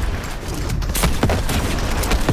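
An explosion booms in a fiery blast.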